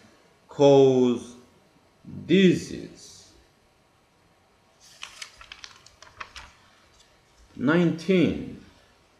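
A man speaks calmly and slowly, close to a microphone.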